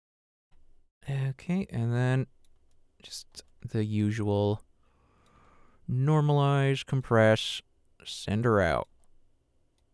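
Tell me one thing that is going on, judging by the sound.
A man speaks in short phrases close to a microphone.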